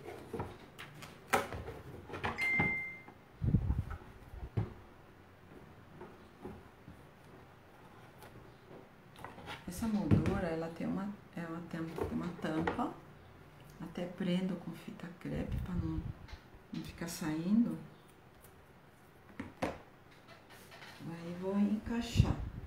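A wooden frame knocks and clatters against a table.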